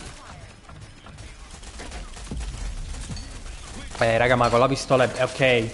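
Gunshots fire in a video game.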